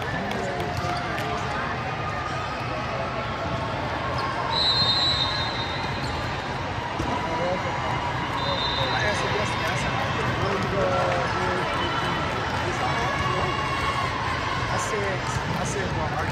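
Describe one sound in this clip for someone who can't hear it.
Many people chatter and call out in a large echoing hall.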